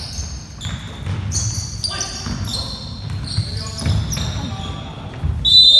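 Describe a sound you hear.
Players' feet thud and pound on a wooden floor.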